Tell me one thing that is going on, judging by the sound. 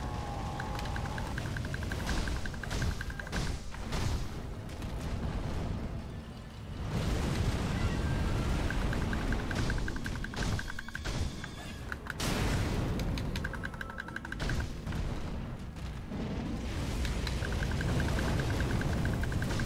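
Sword blows clang against a huge beast.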